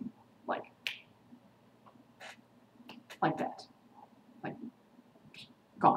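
A young woman speaks briefly and quietly, close by.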